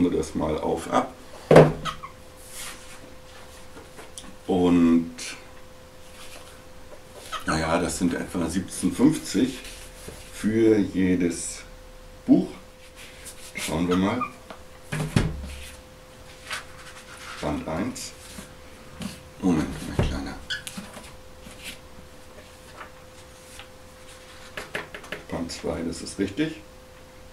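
A man talks calmly and close by, in short bursts.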